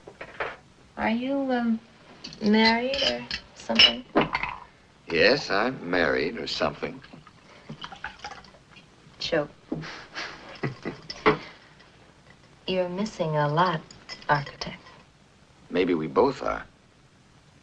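A young woman speaks playfully and close by.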